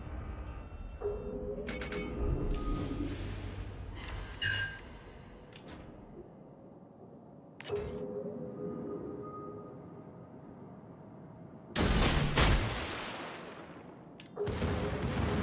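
Heavy naval guns fire with loud booms.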